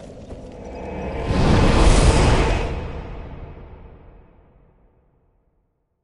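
A deep rushing whoosh swells and then fades away.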